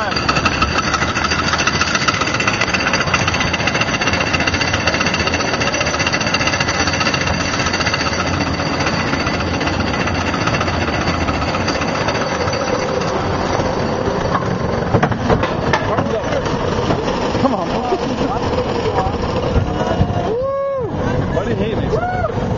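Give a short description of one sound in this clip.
Wind rushes past during the roller coaster ride.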